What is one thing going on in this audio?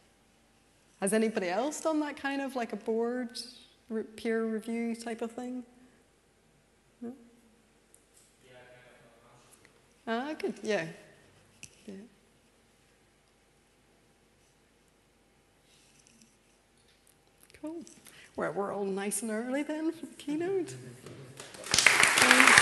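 A young woman speaks calmly through a microphone, with pauses.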